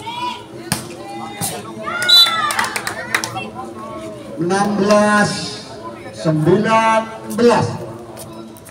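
Young women shout and call out loudly outdoors.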